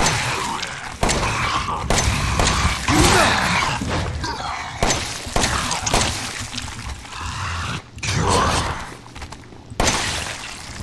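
Pistol shots ring out sharply.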